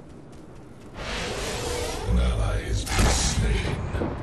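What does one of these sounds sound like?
Weapons and blasts crash loudly in a fight.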